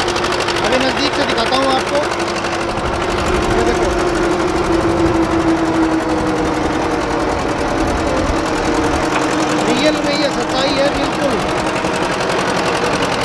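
A tractor engine runs loudly and steadily nearby.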